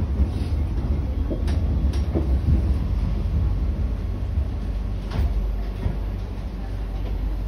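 A metro train rumbles along the track, heard from inside the carriage.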